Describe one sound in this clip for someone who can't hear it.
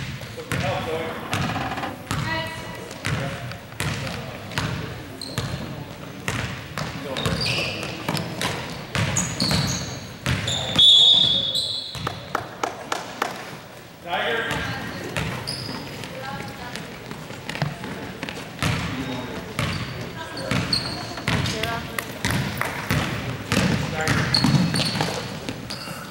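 Young players and spectators shout and call out in an echoing gym.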